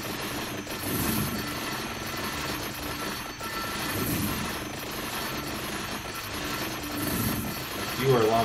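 Game sound effects chime and crackle steadily.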